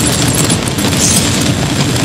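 Electric energy crackles and hums loudly.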